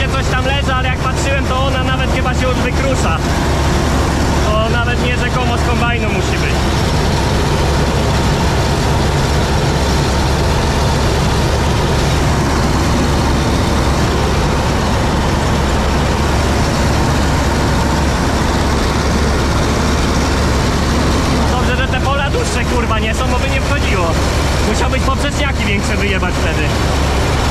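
A middle-aged man talks nearby over the engine noise.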